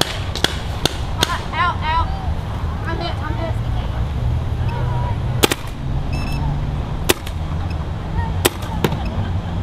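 A paintball gun fires single sharp pops outdoors.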